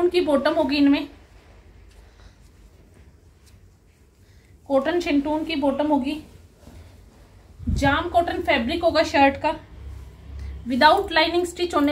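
Cloth rustles softly as it is handled and unfolded.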